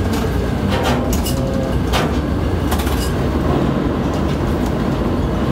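Metal clanks and rattles now and then as a container spreader is lowered.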